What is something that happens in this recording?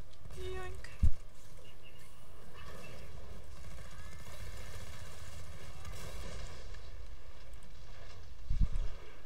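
A heavy blast booms twice.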